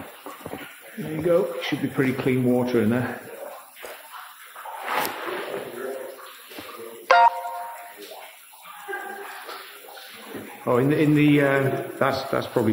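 A man talks nearby with echo around him.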